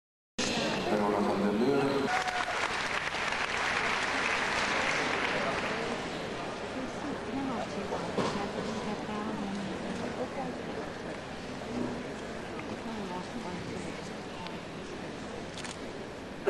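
A crowd in a large echoing hall murmurs and chatters.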